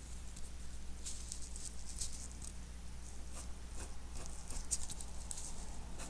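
A pen scratches and scribbles on paper, close by.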